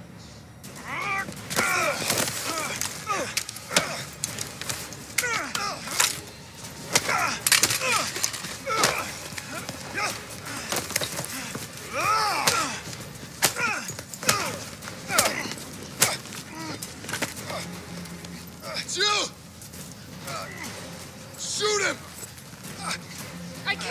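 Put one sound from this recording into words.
Men grunt and groan with strain during a fight.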